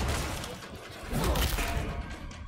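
A gun fires a single shot.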